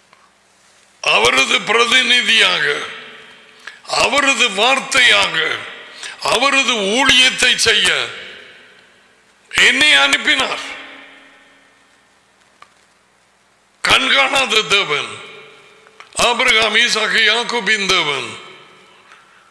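An elderly man speaks forcefully into a microphone, in bursts with pauses.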